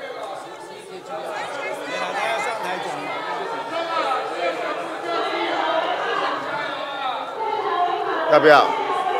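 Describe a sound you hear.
Many men and women shout and talk over one another in a large echoing hall.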